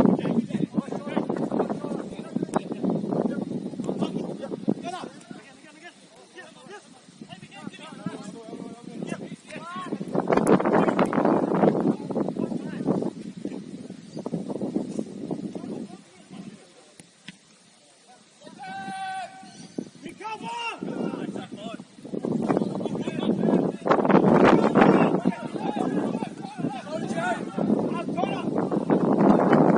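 Young men shout to each other in the distance across an open field.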